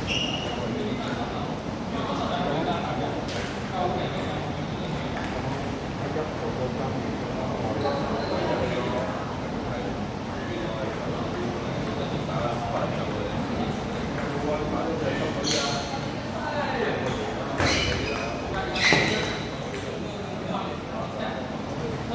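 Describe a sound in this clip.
Table tennis balls click back and forth off paddles and tables.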